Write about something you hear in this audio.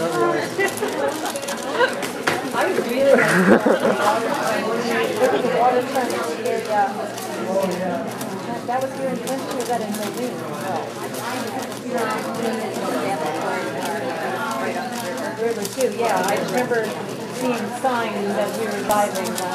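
Several young people chat nearby in a large echoing hall.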